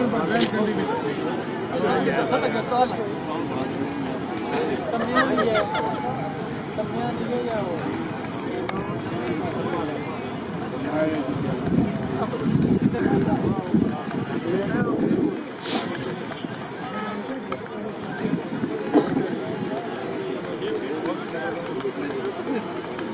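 A large outdoor crowd of men chatters and calls out.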